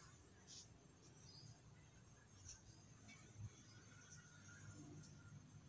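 A fine-tip pen scratches softly on paper.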